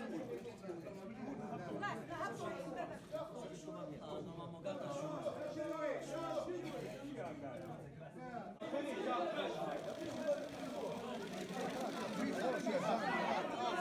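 A crowd of men chatter all around.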